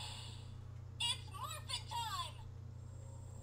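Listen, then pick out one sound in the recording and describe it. A toy plays bright electronic chirping sounds that sweep up and down.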